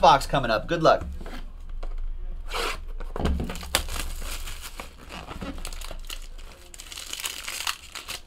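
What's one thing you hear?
Cardboard packaging rustles and scrapes as hands open a box.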